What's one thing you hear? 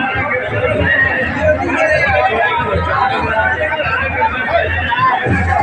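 A large crowd of men chatter and shout loudly outdoors.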